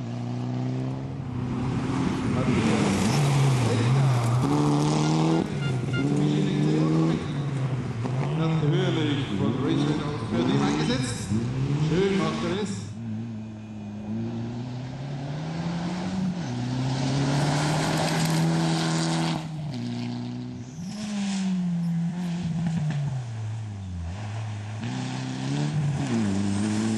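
A rally car engine revs hard and roars, rising and falling as the gears change.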